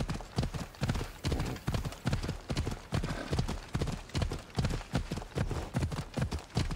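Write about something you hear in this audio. A horse gallops steadily over rocky ground, its hooves thudding in a quick rhythm.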